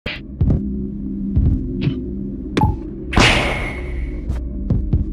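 A game character's steps land with short soft thuds.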